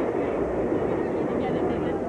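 A crowd of riders screams on a roller coaster.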